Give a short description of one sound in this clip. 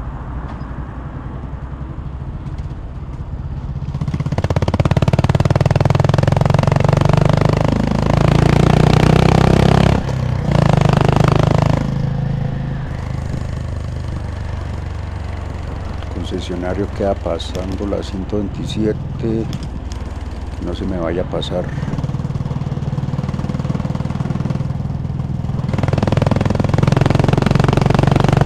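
A motorcycle engine hums steadily and revs up and down as the bike rides along.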